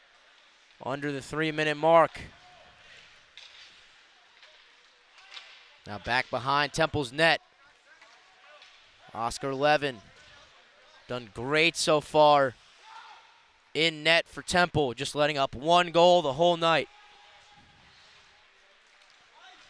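Ice skates scrape and swish across a rink.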